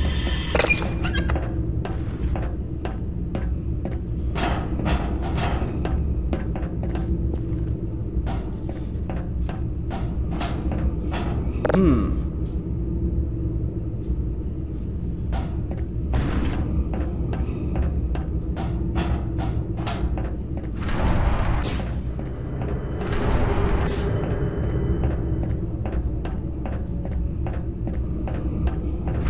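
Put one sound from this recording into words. Footsteps clank on metal grating.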